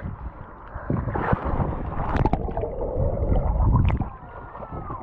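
A girl splashes into the water.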